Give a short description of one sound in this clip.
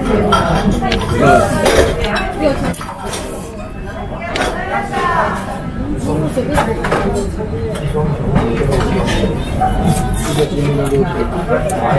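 A young man slurps noodles loudly, close by.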